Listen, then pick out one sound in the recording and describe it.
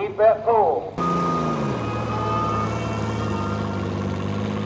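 A tractor engine rumbles and idles close by.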